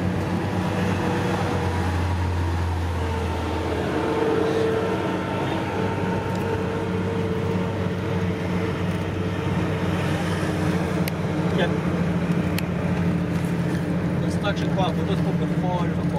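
Traffic passes by on a road outside.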